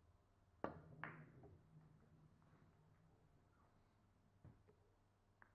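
Billiard balls click together and roll across the cloth.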